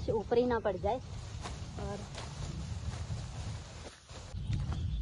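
A sickle swishes and rustles through tall grass stalks.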